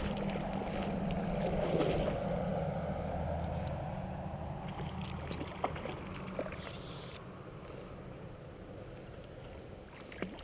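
A hooked fish splashes at the surface of a river.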